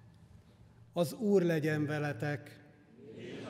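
A man chants into a microphone in a large echoing hall.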